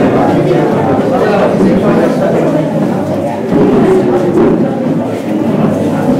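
A man speaks through a microphone.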